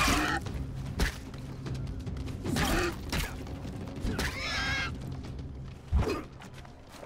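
A wooden club thuds hard against an animal.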